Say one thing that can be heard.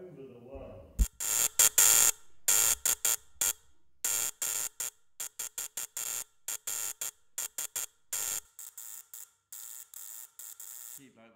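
An electric spark crackles and snaps in rapid bursts.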